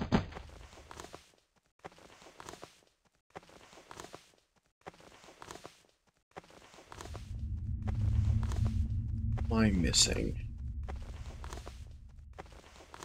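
Hands shuffle along a stone ledge in short, regular scraping bursts.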